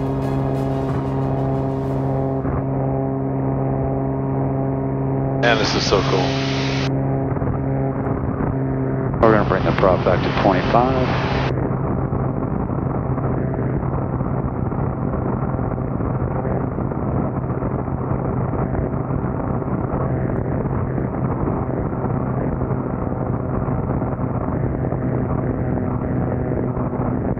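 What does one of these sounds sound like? A propeller aircraft engine drones steadily and loudly.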